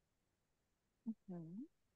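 A woman speaks briefly over an online call.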